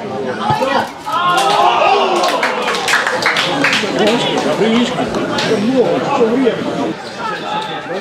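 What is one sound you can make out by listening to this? A crowd of spectators shouts excitedly.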